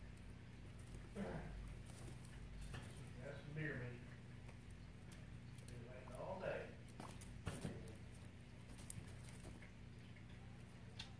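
A small animal rustles and shuffles through dry hay and bedding.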